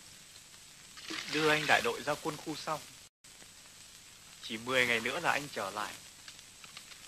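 A man speaks out across open water.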